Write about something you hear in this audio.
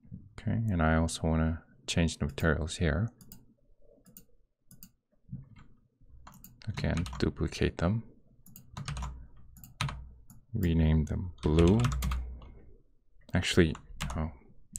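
A young man talks with animation close to a microphone, with short pauses.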